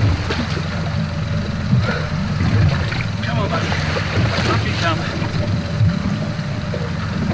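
A game-fishing reel winds in line under load.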